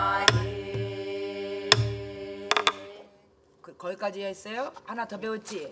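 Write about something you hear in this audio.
A woman sings close by in long, held notes.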